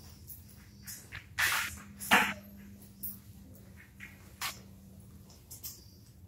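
Footsteps pad softly across a rubber floor.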